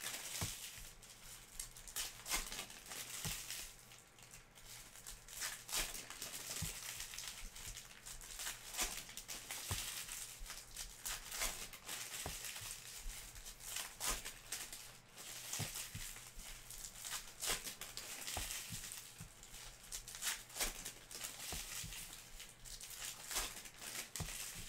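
Foil wrappers crinkle and rustle as they are torn open.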